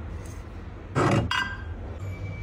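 A ceramic mug clinks against a shelf.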